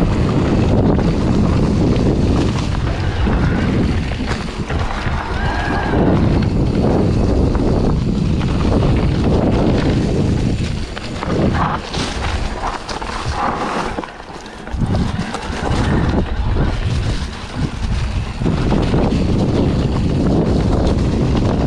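Wind rumbles past the rider.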